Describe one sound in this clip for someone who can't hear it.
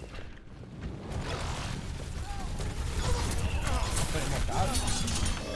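Abilities burst and crackle loudly in a video game fight.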